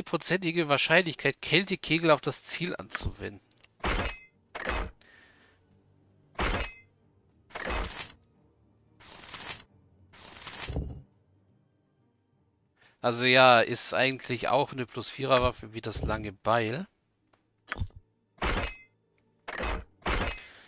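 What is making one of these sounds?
Short interface clicks sound as menu items are opened and closed.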